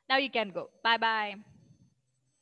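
A young woman speaks brightly over an online call.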